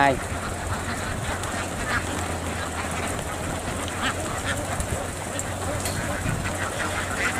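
A large flock of ducks quacks loudly and continuously nearby.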